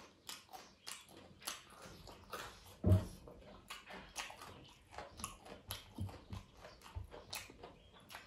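Fingers squish and mix rice on a metal plate.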